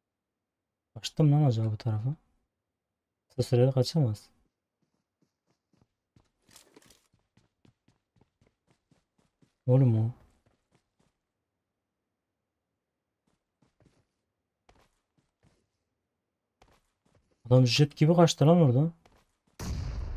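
A young man speaks into a close microphone in short bursts.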